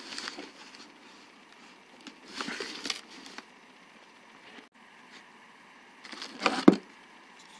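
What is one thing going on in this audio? Plastic wrapping crinkles and rustles as hands handle it.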